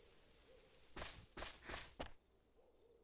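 A boy's footsteps fall on grass and pavement.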